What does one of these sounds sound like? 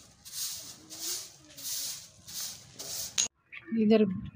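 A straw broom sweeps in short, rhythmic strokes across a gritty floor.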